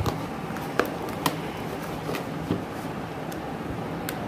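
A box cutter slices through packing tape with scratchy clicks.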